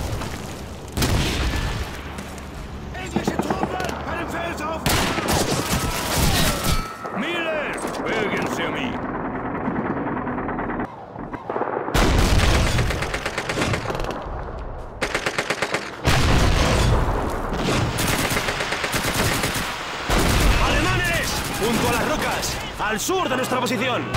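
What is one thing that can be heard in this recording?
Explosions boom close by, one after another.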